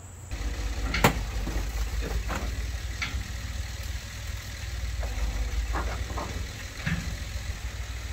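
Metal clanks as a hoisted engine is shifted.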